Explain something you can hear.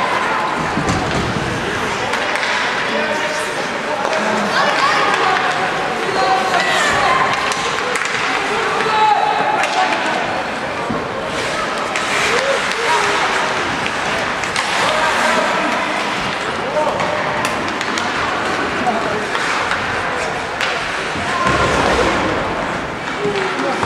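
Young players shout and call out across an echoing rink.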